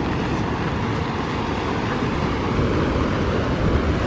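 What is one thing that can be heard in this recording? Rough surf crashes against rocks nearby.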